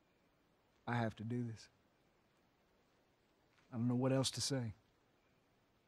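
A man speaks quietly and earnestly, close by.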